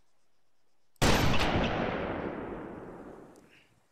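A sniper rifle fires a single shot that echoes away.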